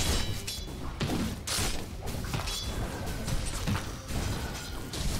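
Weapons clash and thud in quick bursts.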